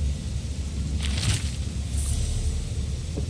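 A game menu makes a soft whooshing sound as an item is selected.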